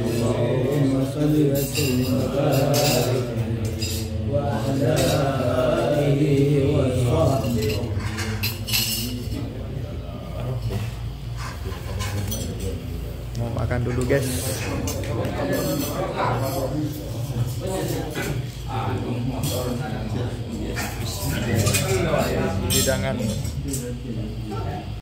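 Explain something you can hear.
Several men chant together in steady low voices.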